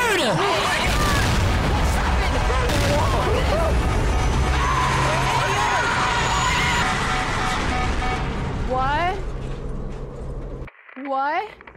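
A helicopter explodes with a deep, rumbling roar.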